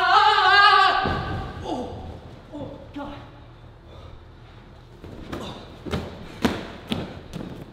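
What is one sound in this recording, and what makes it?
Foam blocks thump and rustle as a body lands in them.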